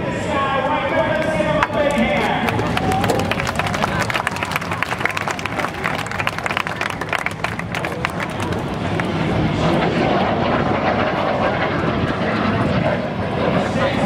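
A jet engine roars as an aircraft flies past.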